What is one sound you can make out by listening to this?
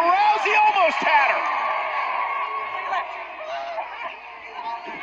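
A large crowd cheers and shouts loudly in a big echoing arena.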